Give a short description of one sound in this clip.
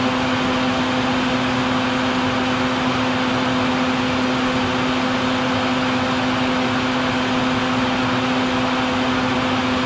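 Hornets hum steadily inside a nest.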